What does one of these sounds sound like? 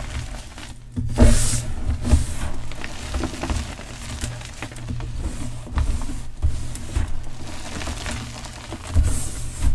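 Crumbs of chalk patter and trickle down onto a hard surface.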